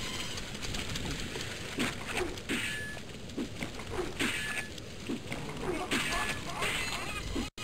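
A sword swings and strikes a creature with sharp thuds.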